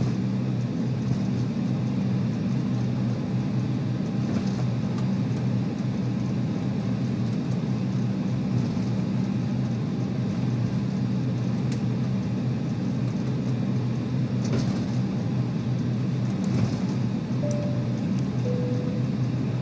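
Jet engines hum steadily as an airliner taxis and rolls down a runway.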